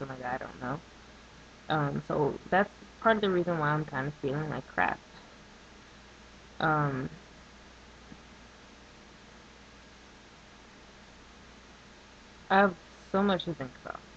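A woman speaks calmly and close to the microphone, with long pauses.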